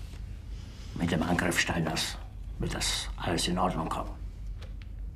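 An older man speaks tensely and firmly, close by.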